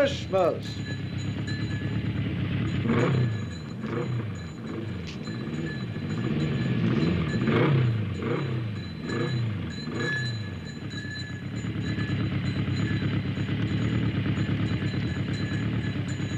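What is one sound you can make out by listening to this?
A motorcycle engine revs up and down, then idles steadily.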